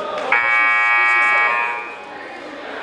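A referee's whistle blows a long shrill blast.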